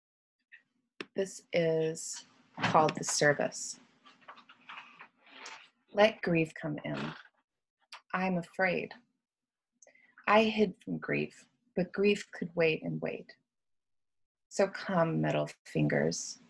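A woman speaks calmly and close to a microphone, with pauses.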